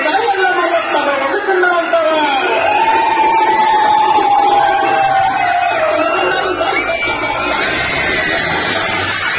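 A folk song with a woman singing plays loudly over a loudspeaker.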